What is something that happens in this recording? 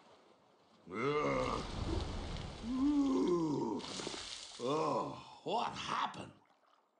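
A man speaks with a worried, pained voice.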